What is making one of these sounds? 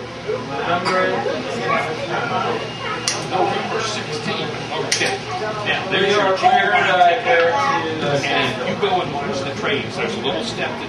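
Several people chat in the background.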